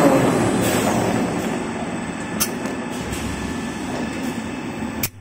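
A toilet paper making machine runs with a steady mechanical hum.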